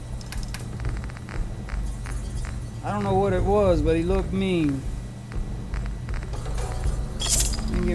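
Soft clicks tick as a menu scrolls.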